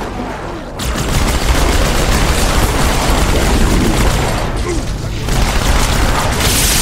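Energy weapon bolts hiss and crackle.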